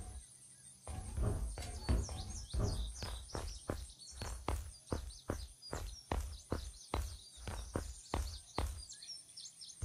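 Footsteps thud steadily on ladder rungs while climbing.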